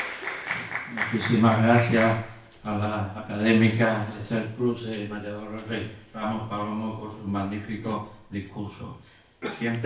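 A man speaks calmly through a microphone in a large hall.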